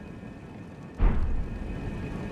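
A deep whooshing thud sounds.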